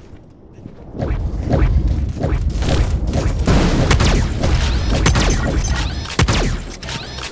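Video game gunfire crackles in rapid bursts.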